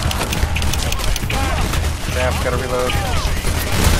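A pistol is reloaded with metallic clicks.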